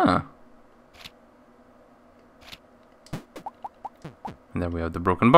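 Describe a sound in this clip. Short electronic blips sound as a game menu cursor moves between items.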